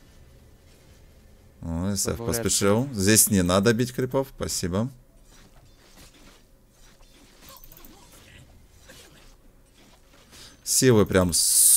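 Magic spells whoosh and crackle during a fantasy battle.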